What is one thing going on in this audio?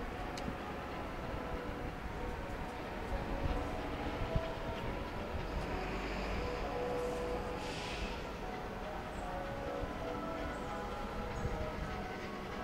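A steam locomotive chuffs heavily as it approaches.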